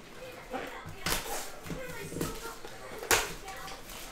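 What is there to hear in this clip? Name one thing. Foil wrapping crinkles in hands.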